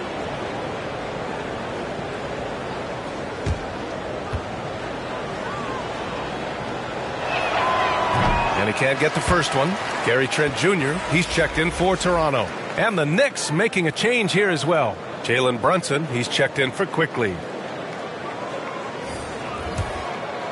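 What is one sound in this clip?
An arena crowd murmurs steadily in a large echoing hall.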